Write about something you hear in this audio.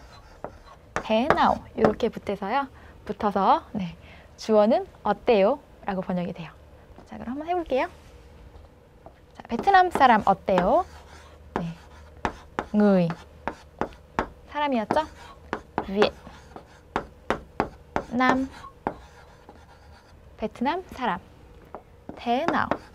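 A young woman speaks calmly and clearly, as if teaching.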